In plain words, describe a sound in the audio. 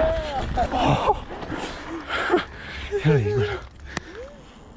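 A man shouts and whoops excitedly nearby.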